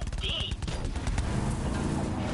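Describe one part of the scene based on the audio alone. Guns fire in rapid bursts.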